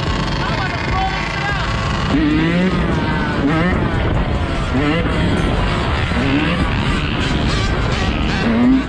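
A dirt bike engine revs up and down repeatedly, rising in pitch with each shift.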